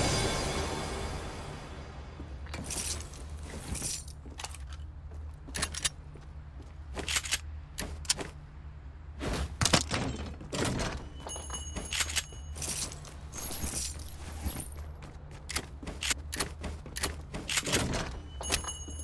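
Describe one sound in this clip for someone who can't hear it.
Footsteps patter quickly across a hard floor.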